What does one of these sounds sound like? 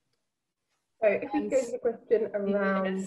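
A second woman speaks calmly over an online call.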